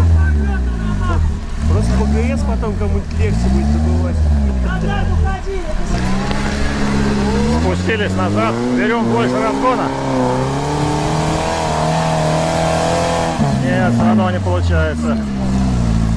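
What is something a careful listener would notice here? An off-road vehicle's engine roars and revs hard, rising and falling in pitch.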